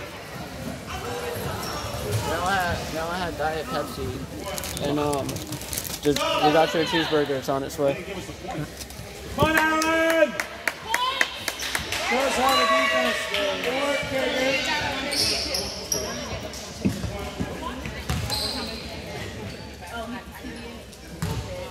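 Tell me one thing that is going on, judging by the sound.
A crowd of spectators talks loudly in an echoing gym.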